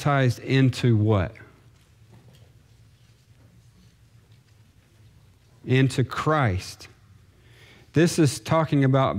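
A man speaks calmly into a microphone, with pauses between phrases.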